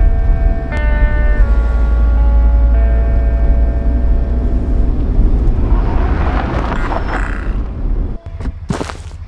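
A vehicle engine rumbles loudly while driving.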